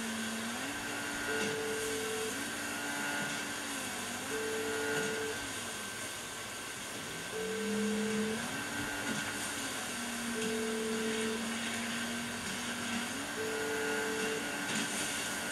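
Water sprays and rushes beneath a speeding boat.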